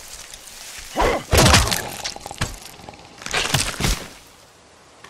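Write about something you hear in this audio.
A shovel strikes something with heavy thuds.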